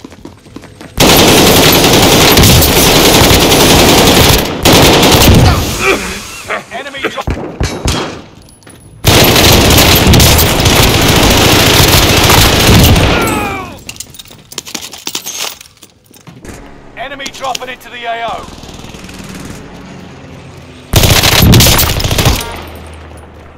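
Gunfire bursts loudly and rapidly.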